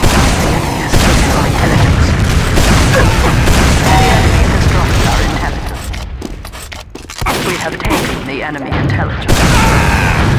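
Rocket launchers fire with booming blasts.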